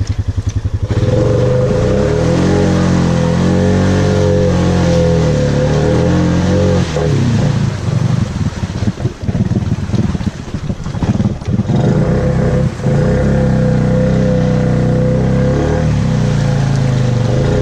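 An ATV engine revs and rumbles up close.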